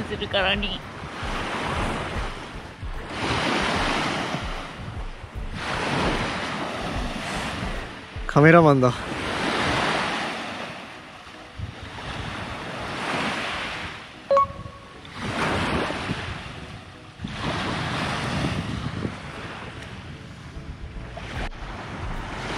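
Small waves wash up onto a pebble shore and draw back.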